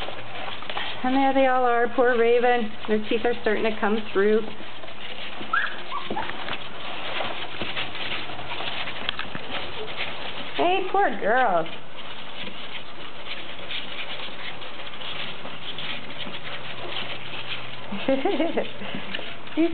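Newborn puppies squeak and whimper close by.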